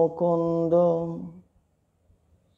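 A man chants a long, steady tone close by, then falls silent.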